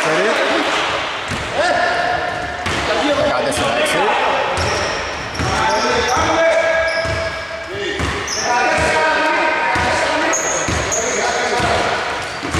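Shoes squeak sharply on a hard court in an echoing hall.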